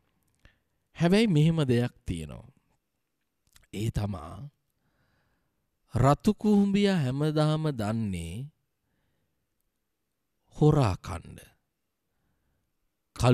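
A man chants slowly and solemnly into a close microphone, in short phrases with pauses between.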